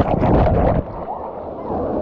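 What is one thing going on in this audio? Water rushes and splashes down a slide.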